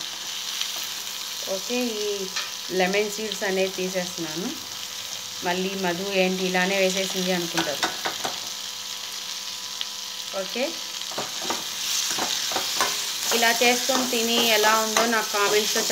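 A spatula scrapes and clinks against a metal pan.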